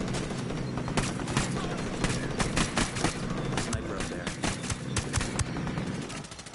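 A suppressed rifle fires a rapid series of shots.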